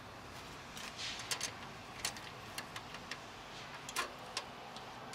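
Metal parts click and rattle as a hand works on them.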